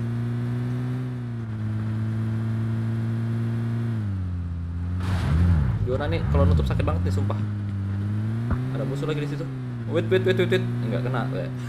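A vehicle engine hums steadily, its pitch shifting slightly.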